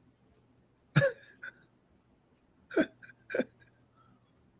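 A man laughs briefly over an online call.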